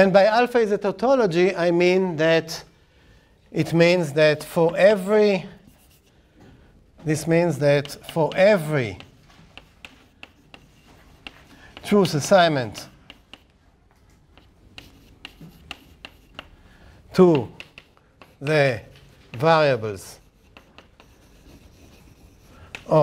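A middle-aged man speaks clearly and deliberately.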